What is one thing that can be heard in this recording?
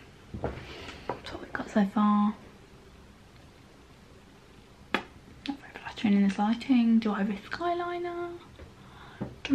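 A young woman speaks expressively and close up, with playful sounds and drawn-out tones.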